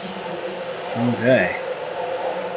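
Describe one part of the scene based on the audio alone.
A man talks calmly into a close microphone.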